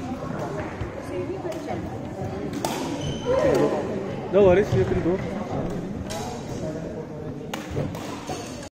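Young people talk and call out nearby in a large echoing hall.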